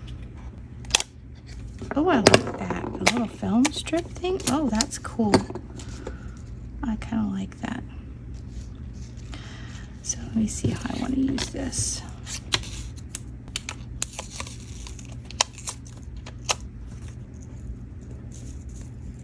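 Small plastic pieces click and tap against a table.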